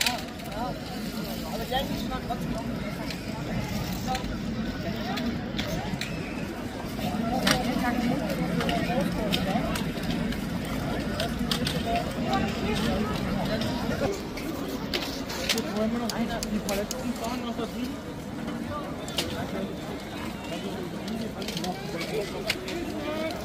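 A crowd murmurs and chatters all around outdoors.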